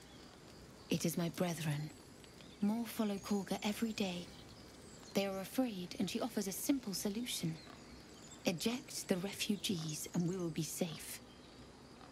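A young woman speaks calmly and earnestly, close by.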